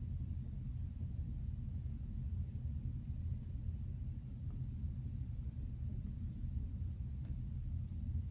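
A fingertip taps on a touchscreen.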